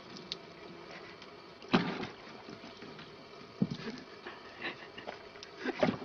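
A cat paws at water in a bucket, splashing and sloshing it.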